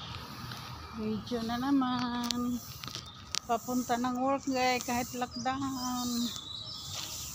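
A middle-aged woman speaks close by in a calm voice.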